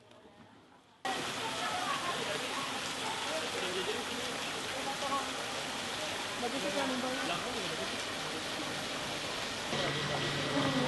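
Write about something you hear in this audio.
Flamingos honk and chatter in a noisy crowd.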